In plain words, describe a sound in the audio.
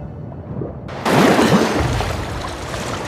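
Water splashes as someone climbs out of a pool.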